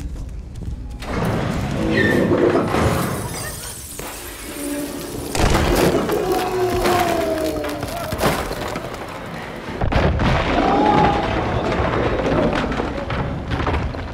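Walls and furniture crash and splinter loudly.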